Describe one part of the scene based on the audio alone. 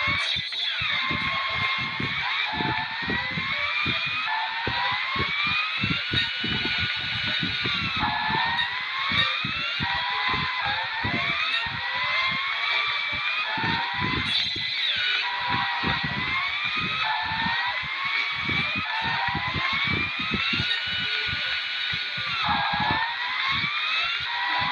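Tyres screech as cars skid around corners.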